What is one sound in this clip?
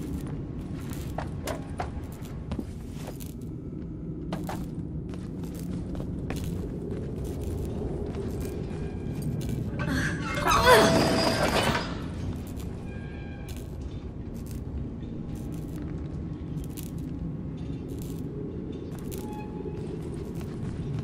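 A small child's footsteps crunch on loose rubble.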